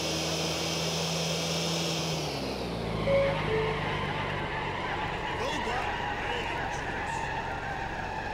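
A car engine hums steadily, then drops in pitch as the car slows.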